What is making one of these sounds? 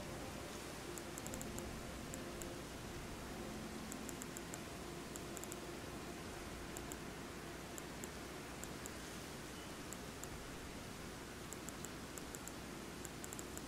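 Short soft menu clicks tick in quick bursts.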